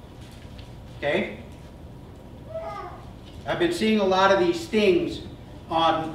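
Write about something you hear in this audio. A man speaks calmly to an audience through a microphone in a room with a slight echo.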